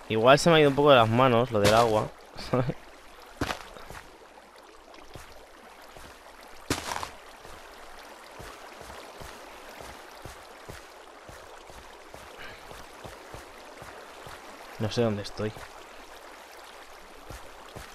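Water flows and trickles steadily.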